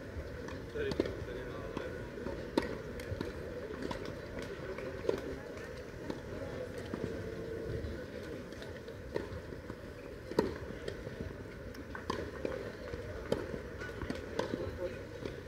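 Tennis balls bounce on a clay court.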